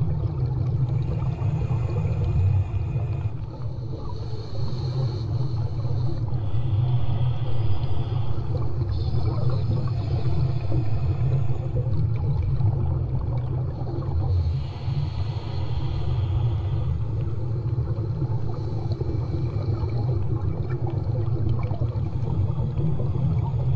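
A person breathes loudly through a snorkel.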